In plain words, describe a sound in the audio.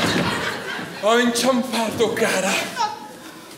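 A man speaks loudly and with animation in an echoing hall.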